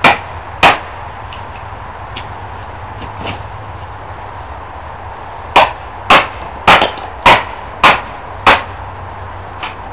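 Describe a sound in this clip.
Wood splits and cracks as a wedge is driven in.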